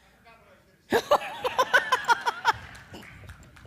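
An older woman laughs into a microphone.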